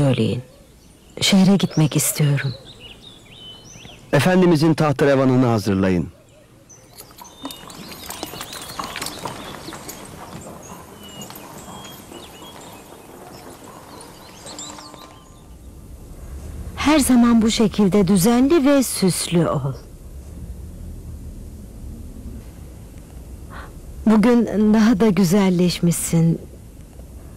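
A woman speaks with emotion close by.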